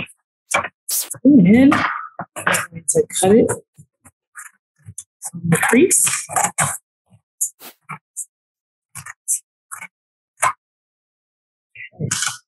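Scissors snip through stiff paper.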